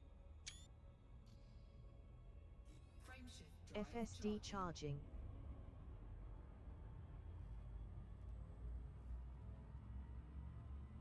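A spaceship engine hums low and steady.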